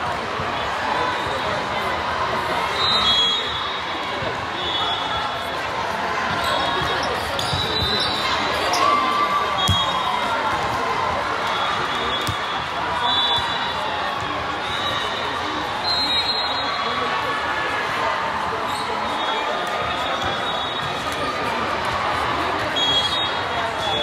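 A crowd of players and spectators chatters and calls out in a large echoing hall.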